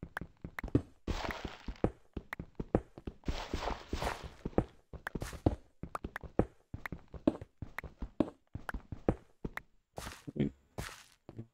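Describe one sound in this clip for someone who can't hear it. Stone blocks crumble and break.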